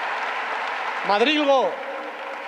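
A man speaks forcefully into a microphone over loudspeakers.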